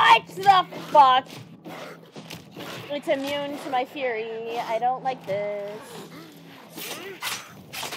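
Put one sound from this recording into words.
A blade slashes and thuds into flesh.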